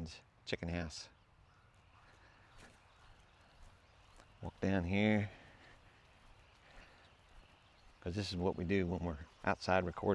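A middle-aged man speaks close to a clip-on microphone, pausing between phrases.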